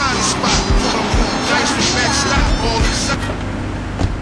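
A car engine roars as a car drives fast.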